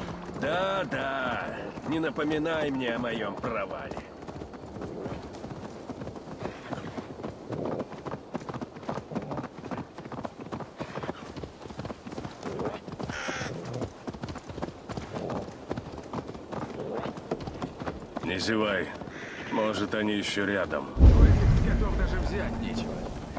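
A horse's hooves clop quickly and steadily on a path.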